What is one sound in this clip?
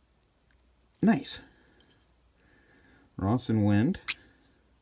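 A metal lighter lid clicks open and snaps shut.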